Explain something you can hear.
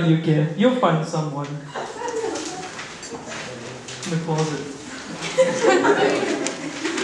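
A group of young people sing together into microphones.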